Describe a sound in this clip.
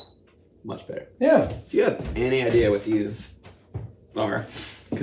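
A second middle-aged man answers calmly nearby.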